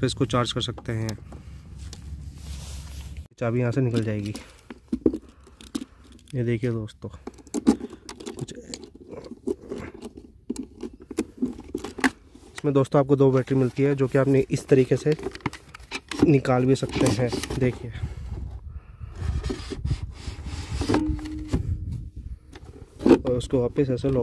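Plastic latches click as a hand works a catch.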